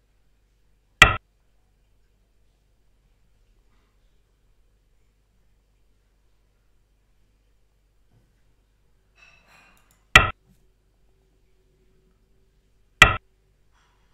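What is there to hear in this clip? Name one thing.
A stone clacks sharply onto a wooden game board, a few times.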